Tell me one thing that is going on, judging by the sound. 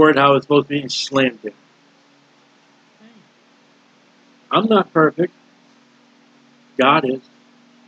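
A middle-aged man speaks calmly into a computer microphone, in short bursts with pauses.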